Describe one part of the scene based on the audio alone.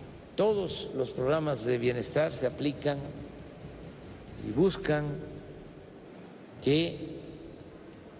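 An elderly man reads out a speech calmly through a microphone, with pauses.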